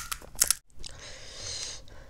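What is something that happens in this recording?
Liquid splashes softly in a bowl.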